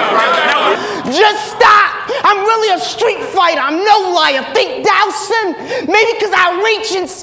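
A young man raps forcefully into a microphone, heard through loudspeakers.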